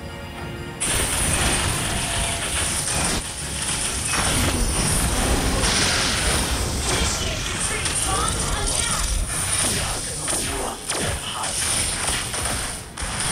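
Game spell effects crackle and blast in quick bursts.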